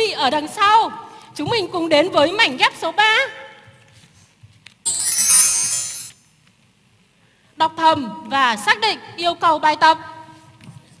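A woman speaks through a microphone in a large hall, in a lively, clear voice.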